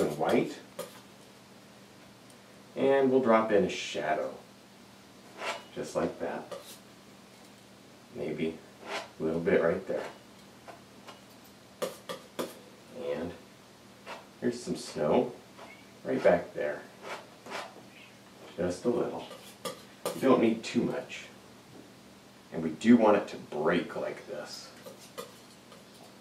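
A man talks calmly and steadily, close by, pausing between phrases.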